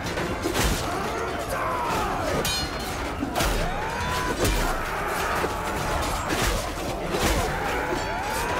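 Swords clash and clang in a battle.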